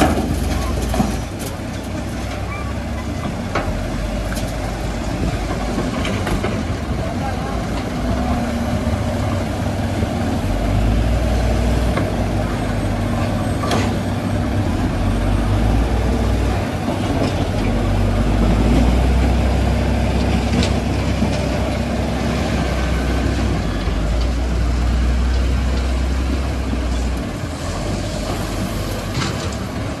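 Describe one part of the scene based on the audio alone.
Rocks and sand clatter into a metal truck bed.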